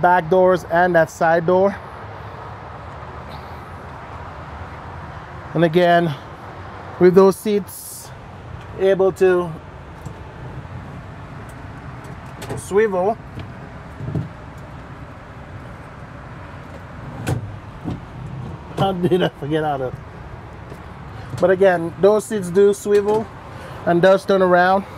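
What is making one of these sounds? A middle-aged man talks calmly and close by, in short bursts with pauses.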